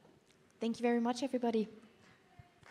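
A woman speaks briefly into a microphone.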